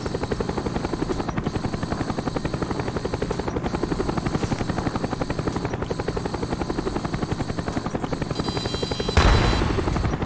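A helicopter's rotor thumps rapidly overhead.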